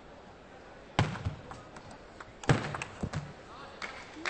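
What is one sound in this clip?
A ping-pong ball clicks back and forth between paddles and a table in a quick rally.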